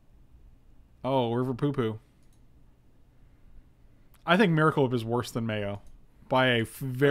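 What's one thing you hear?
A man speaks with animation close to a microphone, in short bursts.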